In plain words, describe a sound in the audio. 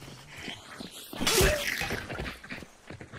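A creature snarls and lunges close by.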